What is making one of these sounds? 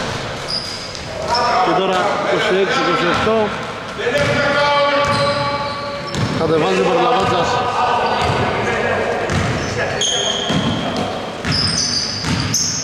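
Men shout and call out across the court.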